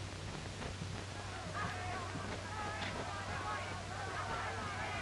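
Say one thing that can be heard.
Footsteps walk slowly on a hard floor.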